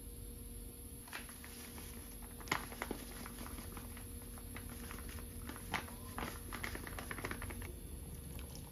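Powder rustles and patters as it is poured from a packet into a pot.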